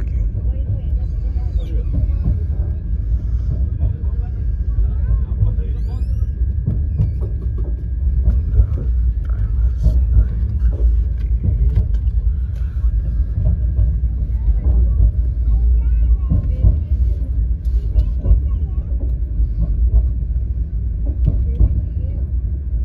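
A train rumbles steadily along the tracks, heard from inside a carriage.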